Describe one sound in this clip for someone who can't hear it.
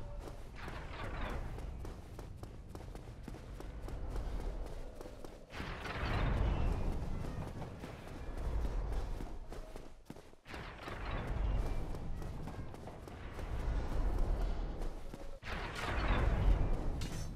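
Armoured footsteps run quickly over stone.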